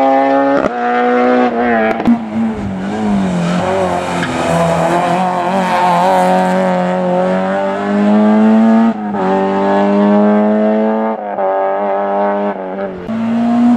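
A rally car engine revs hard and shifts up through the gears as the car drives away.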